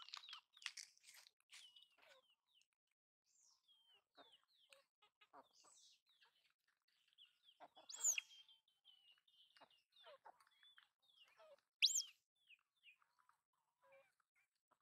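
Small monkeys munch on corn.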